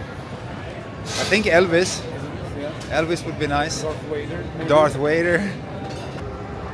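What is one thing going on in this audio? A man talks cheerfully close by.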